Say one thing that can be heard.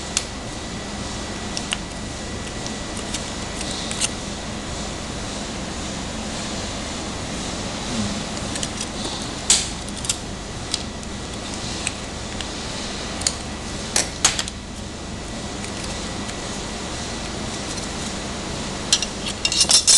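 Paper crinkles as it is unfolded.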